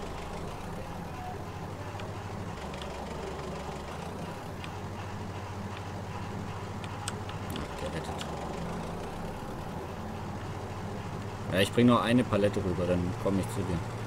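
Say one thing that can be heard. A small engine hums steadily.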